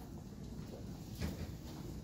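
Footsteps fall softly on a carpeted floor.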